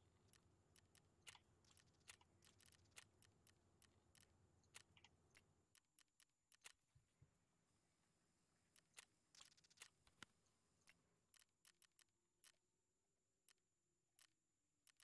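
Short interface clicks tick as menu items are selected.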